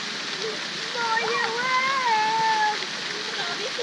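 A child shouts loudly.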